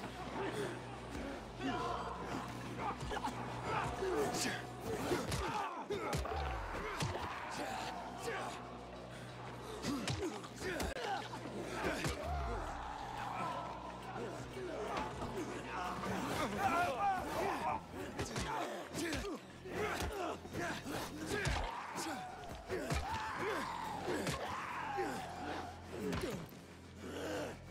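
Zombies growl and snarl close by.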